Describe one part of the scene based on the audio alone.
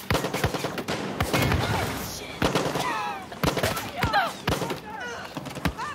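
A rifle fires sharp shots.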